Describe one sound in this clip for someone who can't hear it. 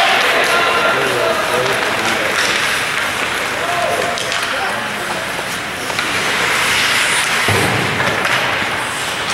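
Spectators chatter nearby in an echoing rink.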